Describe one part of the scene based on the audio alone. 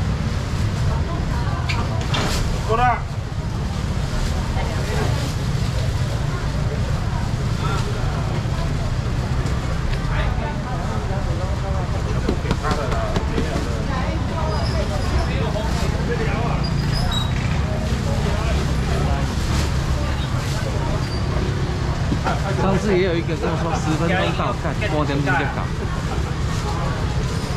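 A busy crowd chatters nearby, with voices of men and women all around.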